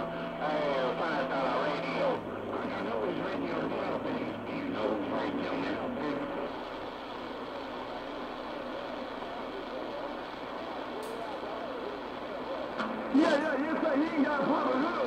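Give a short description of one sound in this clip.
A radio hisses with crackling static.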